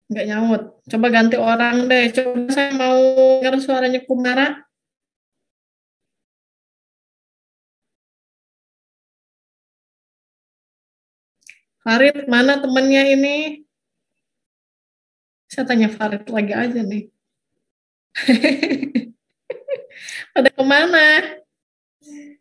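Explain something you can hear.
A middle-aged woman speaks over an online call, with pauses.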